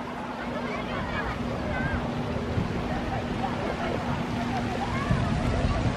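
Fountain jets splash and spray water.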